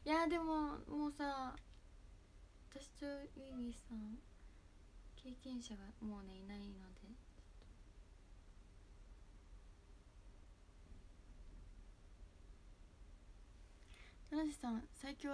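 A young woman talks calmly and close to a phone microphone, pausing now and then.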